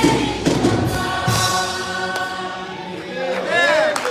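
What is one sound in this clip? A band and singers hold a final chord in an echoing hall.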